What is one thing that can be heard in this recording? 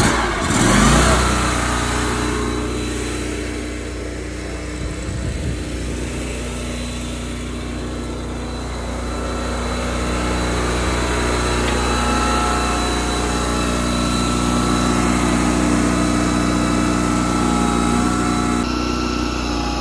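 An engine runs with a steady low hum.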